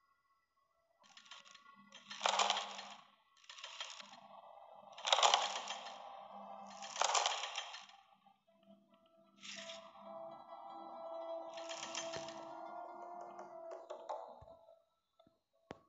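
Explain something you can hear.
Stone tiles slide and grind into place.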